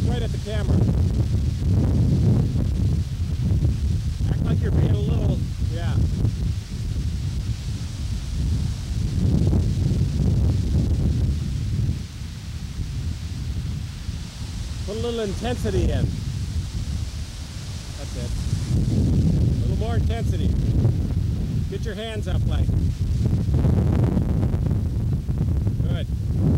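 Wind rumbles against a microphone outdoors.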